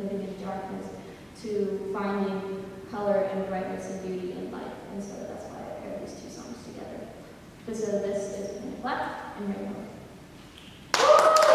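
A women's choir sings in an echoing hall.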